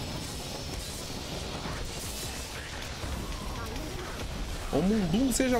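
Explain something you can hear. Magic blasts crackle and hiss.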